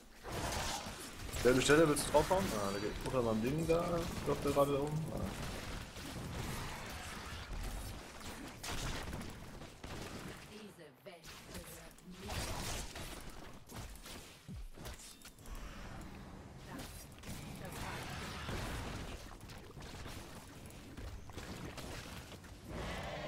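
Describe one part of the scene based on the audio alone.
Game battle effects crackle and clash.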